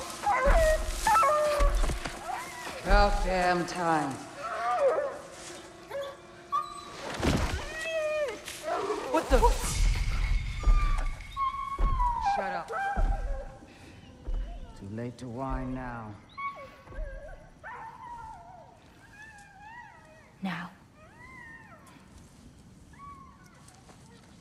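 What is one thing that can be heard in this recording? A young woman whispers urgently close by.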